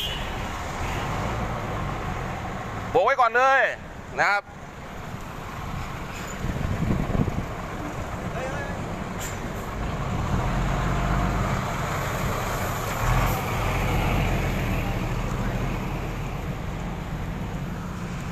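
Traffic rumbles steadily nearby outdoors.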